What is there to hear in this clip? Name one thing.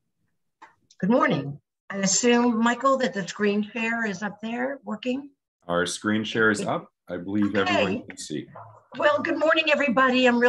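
A woman speaks calmly and steadily over an online call.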